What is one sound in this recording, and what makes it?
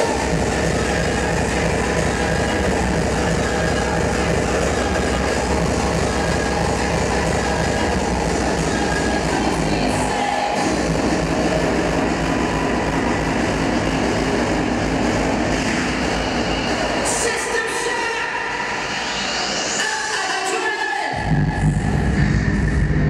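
Loud electronic dance music with a heavy bass beat plays through a large echoing hall.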